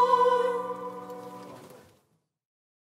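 A women's choir sings a held final chord that fades away.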